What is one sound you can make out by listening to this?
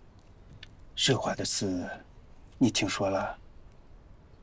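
A middle-aged man speaks nearby in a low, earnest voice.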